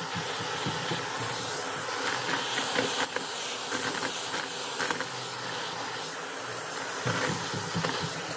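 Bits of confetti rattle and click as a vacuum sucks them up.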